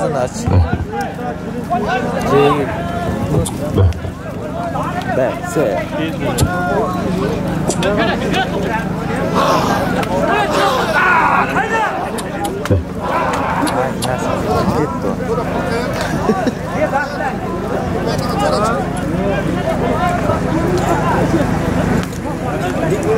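A crowd of men shouts and calls outdoors.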